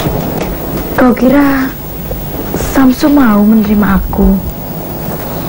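A young woman speaks in a strained, distressed voice.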